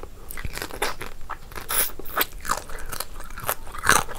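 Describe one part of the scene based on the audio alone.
A young woman bites and crunches into crispy fried food.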